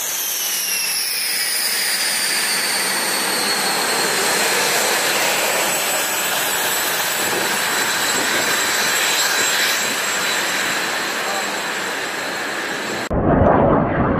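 A jet engine whines loudly close by.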